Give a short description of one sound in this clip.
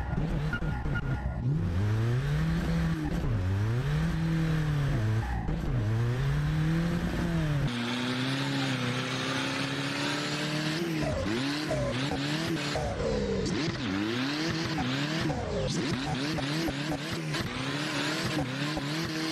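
A car engine revs up and down hard, shifting gears.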